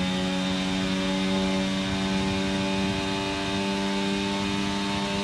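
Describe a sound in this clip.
A racing car engine screams at high revs, steady and close.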